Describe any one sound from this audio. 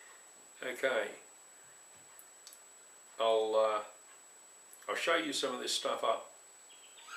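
An elderly man speaks calmly and close by, in short phrases.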